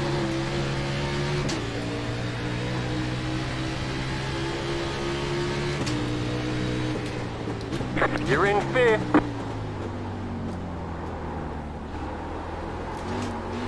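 A racing car engine drones loudly, its pitch stepping with each gear change.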